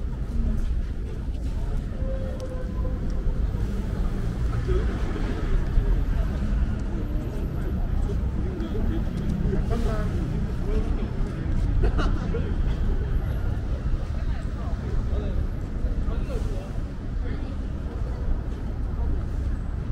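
A low city hum rumbles steadily outdoors.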